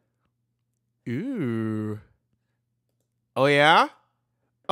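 Young singers sing short held notes through microphones.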